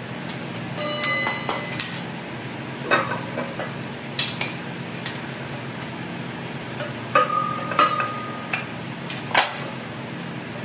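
A tool knocks and clicks against metal.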